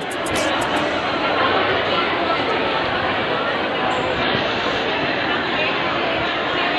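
A crowd chatters loudly all around.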